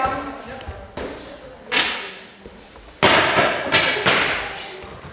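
Bodies thud onto mats.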